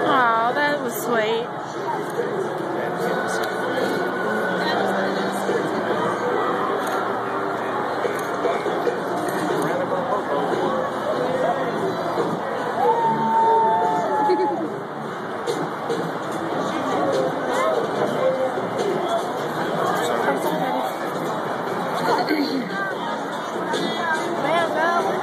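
A crowd of men and women chatters all around in an open-air stadium.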